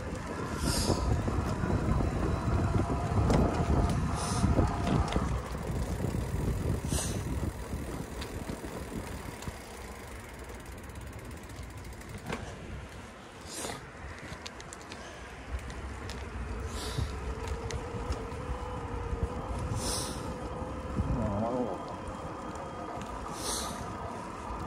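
Tyres roll steadily over rough pavement.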